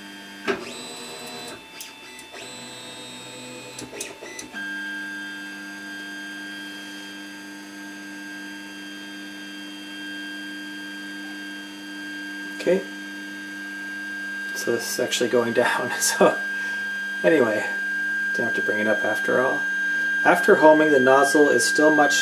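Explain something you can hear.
A machine's motors and fan hum steadily.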